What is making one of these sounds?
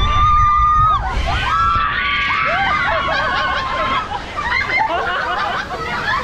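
Water rushes and splashes loudly.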